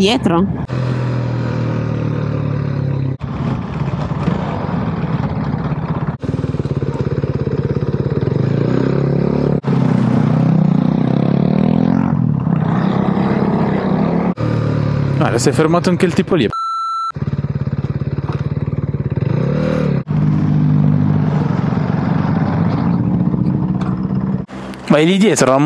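A motorcycle engine revs and drones up close, rising and falling as it shifts gears.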